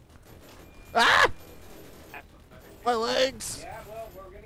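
A man shouts loudly into a microphone.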